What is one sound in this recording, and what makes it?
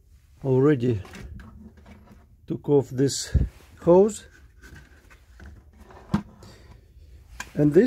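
A plastic air filter scrapes and rustles as it is pulled loose by hand.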